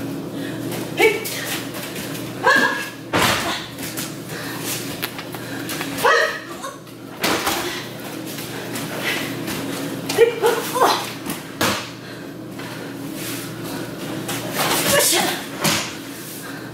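Martial artists shout sharp cries as they strike.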